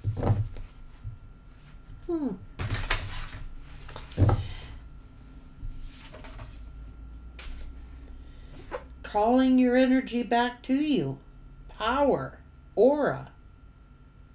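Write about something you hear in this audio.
A woman speaks calmly and close by, with pauses.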